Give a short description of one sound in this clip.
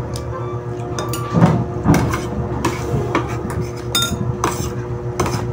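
A metal spoon scrapes and clinks against a plate.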